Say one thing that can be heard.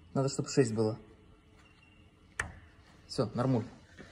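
A plastic knob clicks as it is turned.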